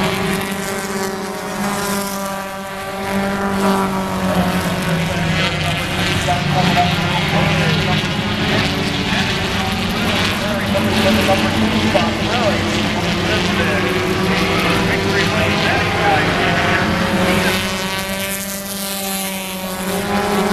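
Race car engines roar loudly around a track outdoors.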